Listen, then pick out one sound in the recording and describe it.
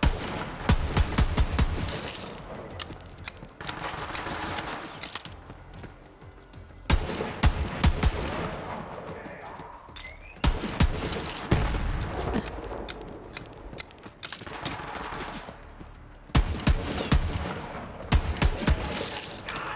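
Rifle shots bang in quick bursts.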